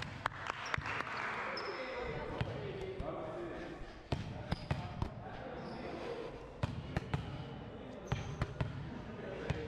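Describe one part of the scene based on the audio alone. A volleyball thuds against hands and the floor in a large echoing hall.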